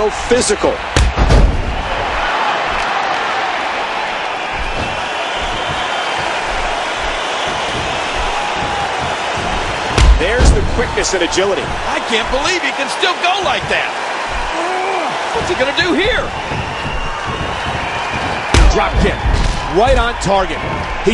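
Heavy thuds of bodies and blows land.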